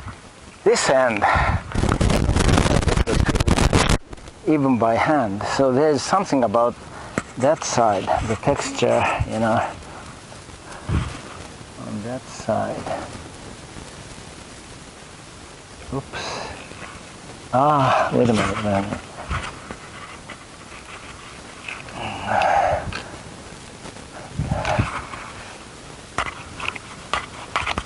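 A man talks calmly, close to a microphone.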